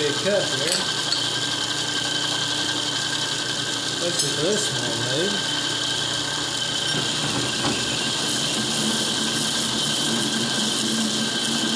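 A metal lathe hums steadily as its chuck spins.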